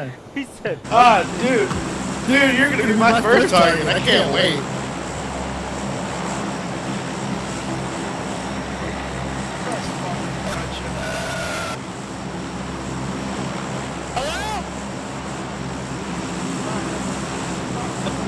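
A large propeller plane's engines drone steadily.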